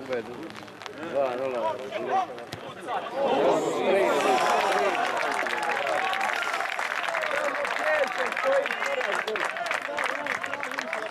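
Spectators cheer and shout loudly outdoors.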